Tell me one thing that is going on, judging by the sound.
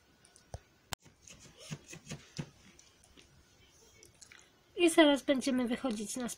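A dog chews and gnaws on a plush toy.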